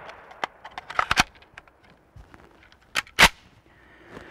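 A shotgun's action clacks as it is worked.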